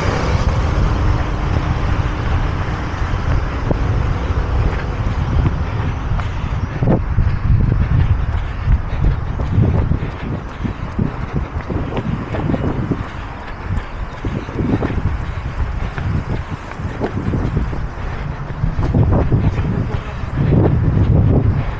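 Traffic hums along a nearby road.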